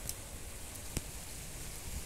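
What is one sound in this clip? Scissors snip through plant roots.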